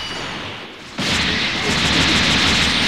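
Powerful punches thud and crash.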